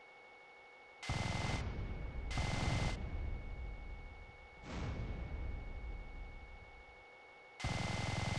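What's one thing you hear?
Explosions boom loudly, one after another, with rumbling echoes.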